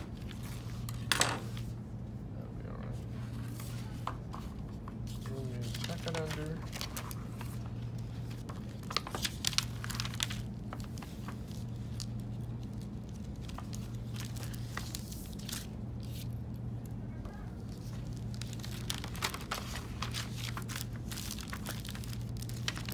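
Paper rustles and crinkles as it is folded and smoothed flat.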